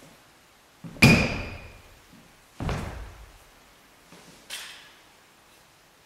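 A sword swishes sharply through the air.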